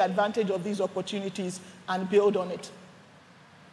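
A woman speaks clearly into a close microphone.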